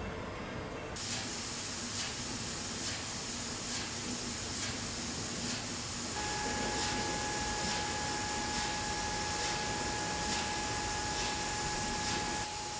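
A bottling machine whirs and clatters steadily.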